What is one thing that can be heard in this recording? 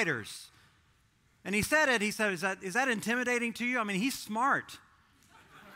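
A man speaks with animation through a microphone in a large room.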